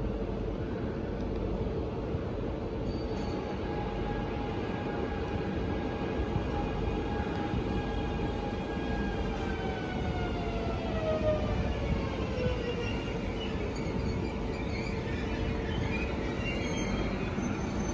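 An electric train rolls in along the tracks with a steady rumble.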